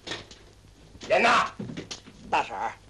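A man speaks loudly and sharply.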